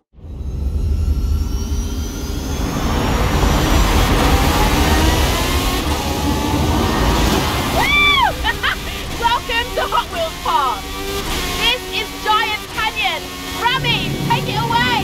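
A racing car engine roars at high speed and revs up.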